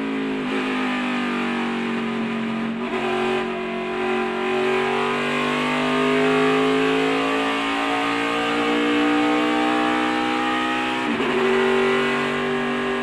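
A race car engine roars loudly from inside the cabin, rising in pitch as it accelerates and dropping at each gear change.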